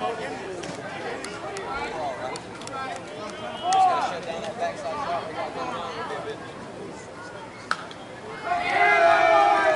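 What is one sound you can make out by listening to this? Men call out and chatter at a distance outdoors.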